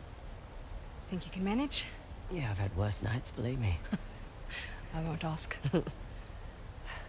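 A second young woman answers in a low, steady voice.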